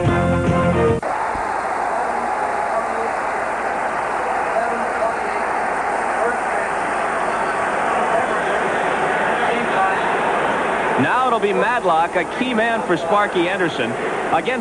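A large crowd cheers and roars loudly in a stadium.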